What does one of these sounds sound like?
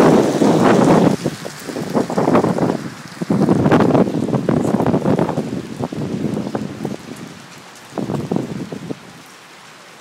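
Strong wind gusts roar in a storm.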